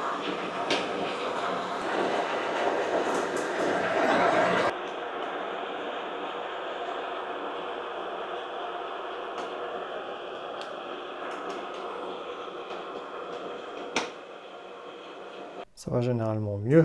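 A milling machine runs with a steady whir.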